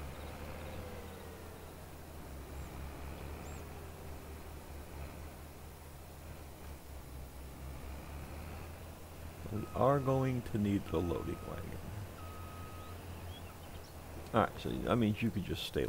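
A combine harvester engine hums low and steady.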